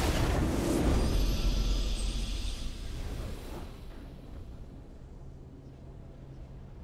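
A short video game victory fanfare plays and fades away.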